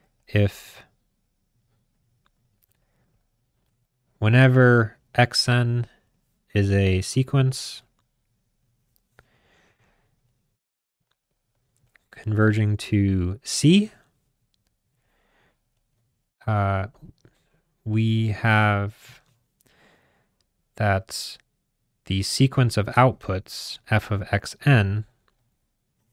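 A man speaks calmly and explains into a close microphone, with pauses.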